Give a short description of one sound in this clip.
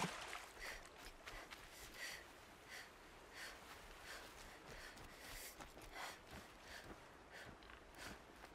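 Quick footsteps run through grass and dirt.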